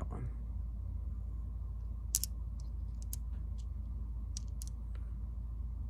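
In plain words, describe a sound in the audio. Small stones click together in a hand.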